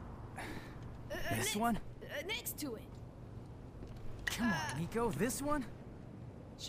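A young man speaks casually.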